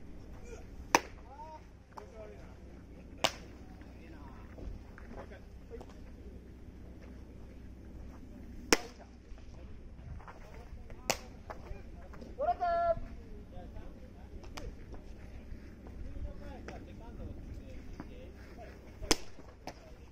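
A baseball smacks sharply into a catcher's leather mitt, again and again.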